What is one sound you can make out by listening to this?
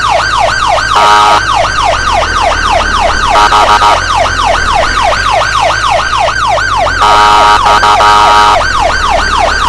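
A vehicle horn blares in short loud bursts.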